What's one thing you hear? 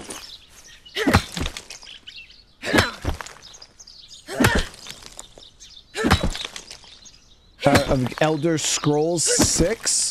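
A pickaxe strikes rock in sharp, repeated blows.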